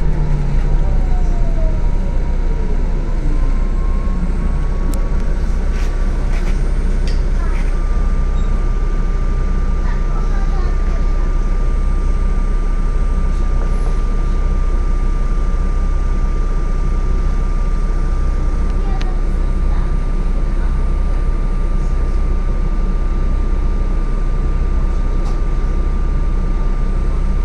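A hybrid city bus hums from inside the cab as it slows to a stop.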